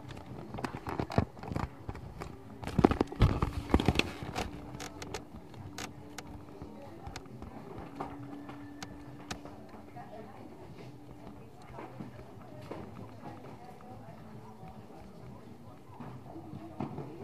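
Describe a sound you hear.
A horse's hooves thud on soft ground.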